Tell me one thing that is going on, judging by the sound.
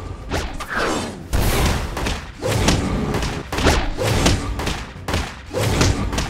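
Sword blows clash and swish in quick bursts.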